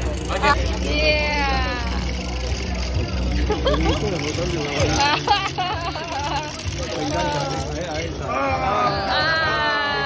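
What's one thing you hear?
A small toy robot whirs and clatters as it walks on paving stones.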